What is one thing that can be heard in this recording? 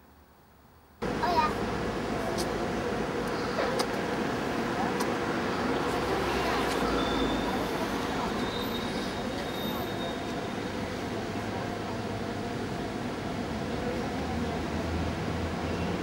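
City traffic rumbles steadily in the background outdoors.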